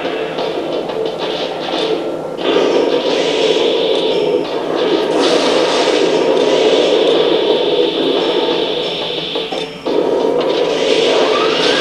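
A robot's heavy footsteps clank steadily.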